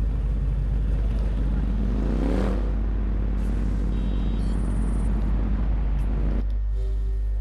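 A motorcycle engine roars steadily and then cuts off.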